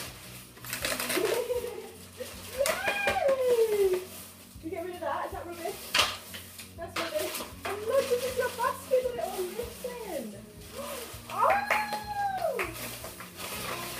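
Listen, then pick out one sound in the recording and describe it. A woman talks to a small child in a lively, sing-song voice close by.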